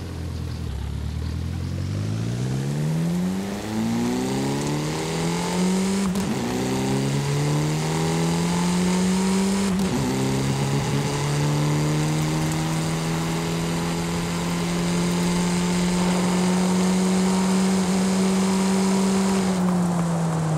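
A car engine revs up, rising in pitch through the gears.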